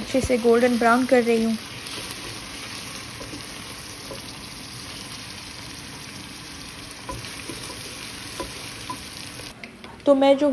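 Onions sizzle in hot oil in a pan.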